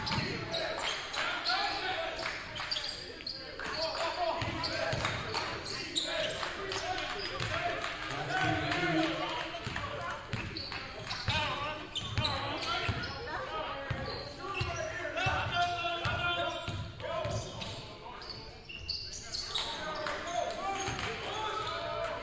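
A crowd chatters and calls out in the stands.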